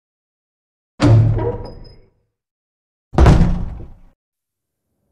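A heavy wooden door bangs loudly and rumbles.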